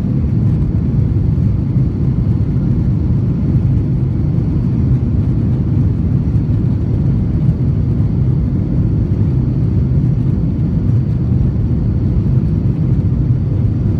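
A jet airliner's engines rumble steadily inside the cabin.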